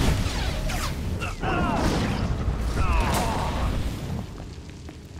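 Flames burst with a roar.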